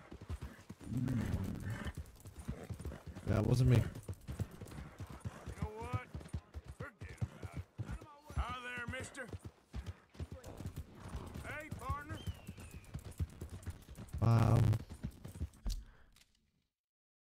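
A horse trots on a muddy dirt road.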